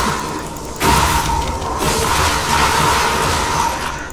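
A fiery blast bursts with a loud crack.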